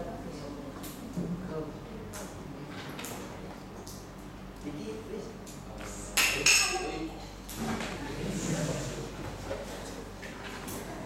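A boy speaks to a room in a calm voice, with a slight echo.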